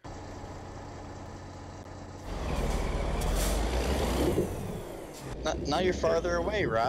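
A truck engine idles with a low rumble and revs louder.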